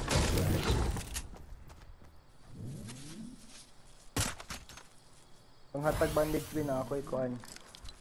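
Wooden building pieces snap into place with sharp clacks.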